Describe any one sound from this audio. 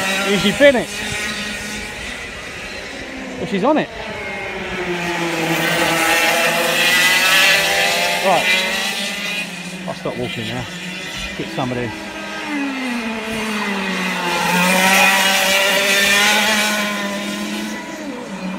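Kart engines whine and rev as karts race past on a track.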